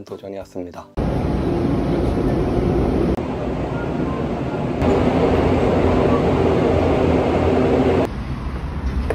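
A subway train rumbles steadily.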